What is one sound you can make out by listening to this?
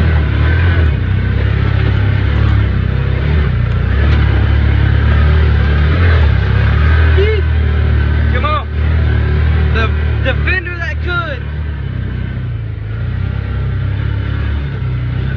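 A vehicle engine rumbles steadily up close.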